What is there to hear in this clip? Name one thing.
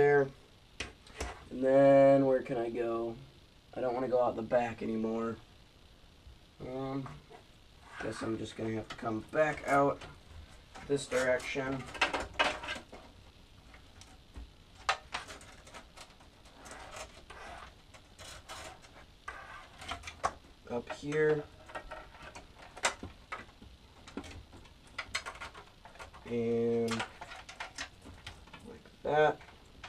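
Small plastic parts click and knock inside a computer case.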